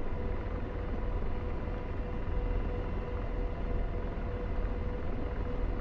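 An aircraft engine rumbles steadily.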